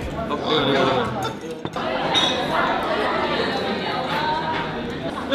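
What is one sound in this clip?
Many people chatter nearby in a busy, echoing room.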